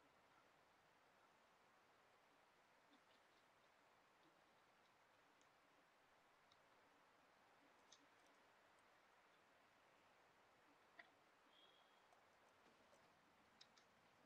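Wind blows steadily through snowy trees.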